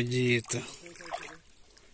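A fish splashes in the water close by.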